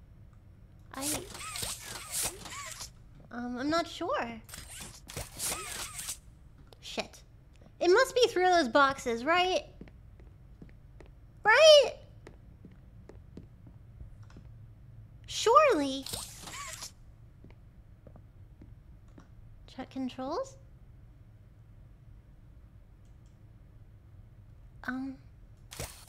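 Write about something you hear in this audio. A young woman talks with animation into a close microphone, in bursts with pauses.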